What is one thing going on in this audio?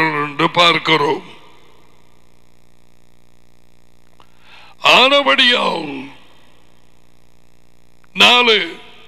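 A man speaks slowly and clearly into a microphone, reading out in short phrases.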